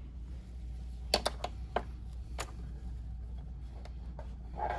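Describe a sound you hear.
Plastic clips click as hands remove them from fabric.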